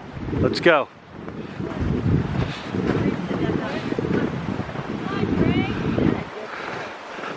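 Boots crunch on snow.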